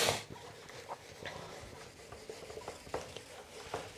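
A duster rubs across a whiteboard.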